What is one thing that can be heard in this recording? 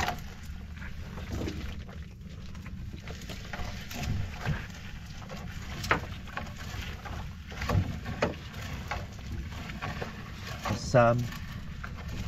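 Low wind rumbles steadily outdoors on open water.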